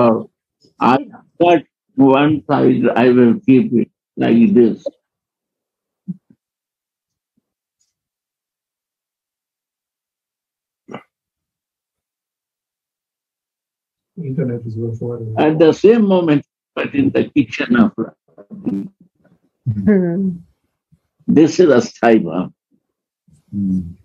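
An elderly man speaks with feeling over an online call.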